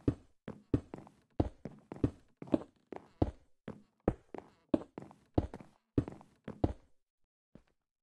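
Footsteps tap quickly on stone.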